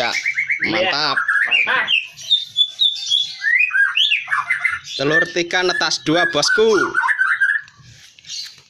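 Baby birds cheep shrilly from close by.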